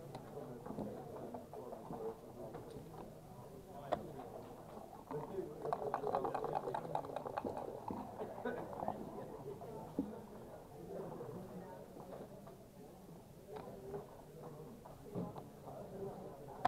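Backgammon checkers click as they are moved on a board.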